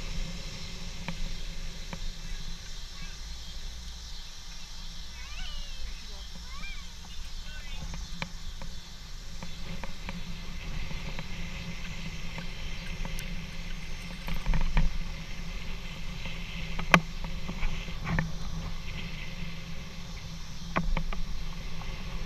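A bicycle chain and frame rattle and click.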